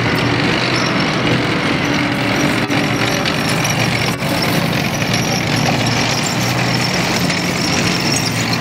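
Metal tracks clank and squeal over the ground.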